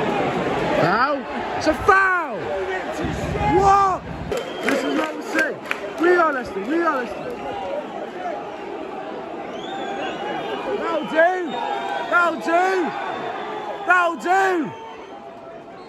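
A crowd of fans sings a chant loudly together.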